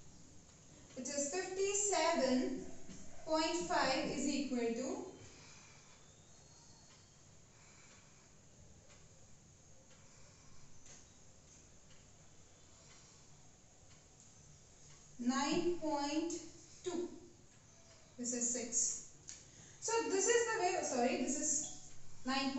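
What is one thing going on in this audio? A woman explains calmly, as if teaching, close by.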